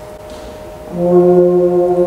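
A brass quartet plays a slow, swelling chord together.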